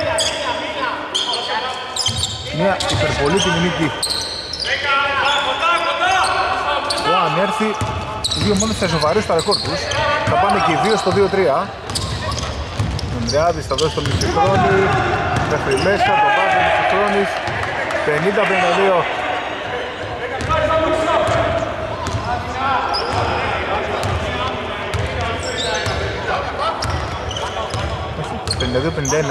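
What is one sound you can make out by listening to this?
Basketball sneakers squeak on a hardwood court in a large echoing hall.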